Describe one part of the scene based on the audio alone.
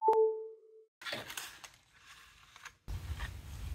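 Plastic backing film crinkles as it is peeled away.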